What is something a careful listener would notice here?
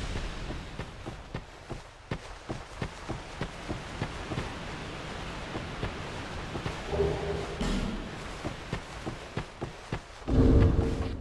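Armoured footsteps crunch steadily on a dirt path.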